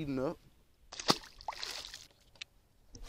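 A fish splashes into the water.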